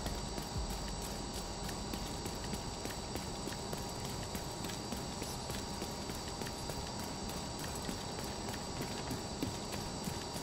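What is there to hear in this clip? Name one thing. Footsteps run quickly over hard ground.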